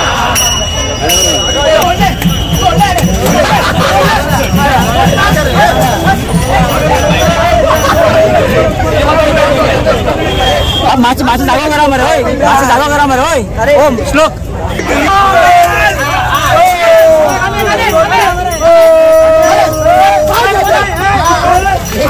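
A crowd of young men shouts and cheers excitedly close by, outdoors.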